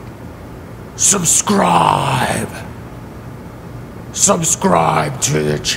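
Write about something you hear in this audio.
A man speaks in a low, gravelly voice.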